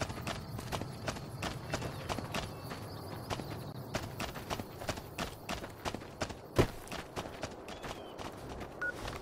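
Footsteps crunch steadily on loose gravel.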